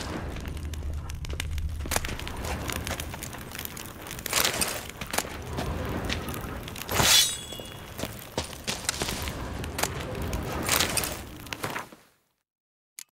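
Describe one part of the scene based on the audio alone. A torch flame crackles and roars softly.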